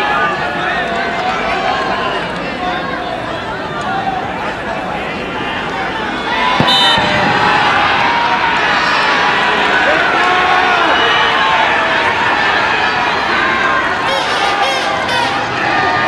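A large crowd of spectators chatters and cheers loudly outdoors.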